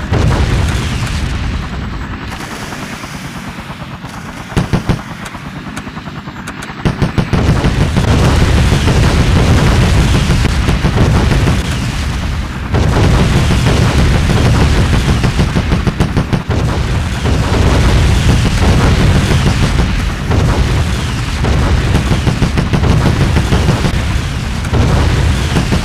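Helicopter rotors thump in a steady low drone.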